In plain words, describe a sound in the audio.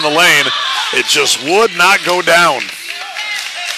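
Young men shout loudly in a large echoing gym.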